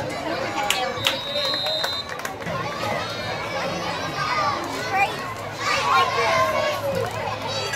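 Spectators shout and cheer from the stands outdoors.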